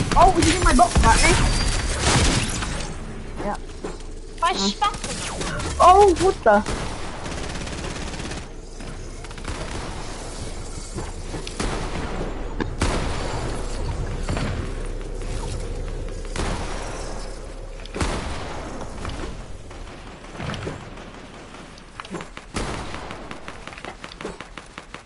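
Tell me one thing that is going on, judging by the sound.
Game sound effects clatter and thud as building pieces snap into place quickly.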